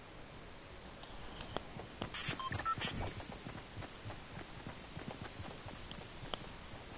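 Footsteps patter on hard ground.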